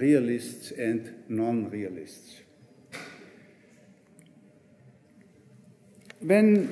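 A middle-aged man lectures calmly into a microphone in an echoing room.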